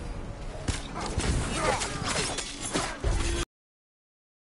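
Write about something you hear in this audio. Swords clash and strike in close combat.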